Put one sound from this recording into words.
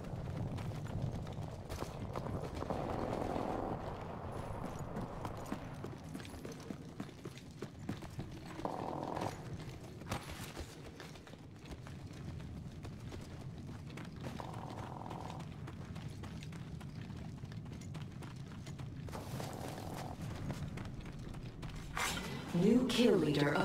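Footsteps run quickly over hard floors and dirt.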